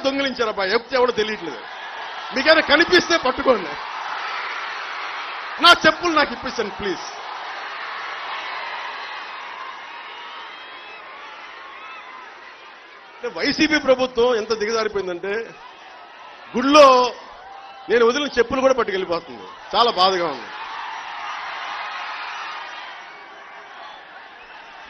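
A large crowd cheers and roars outdoors.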